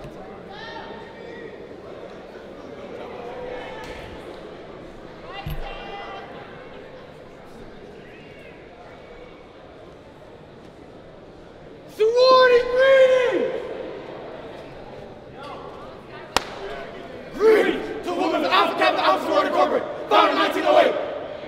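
A seated crowd murmurs in a large echoing hall.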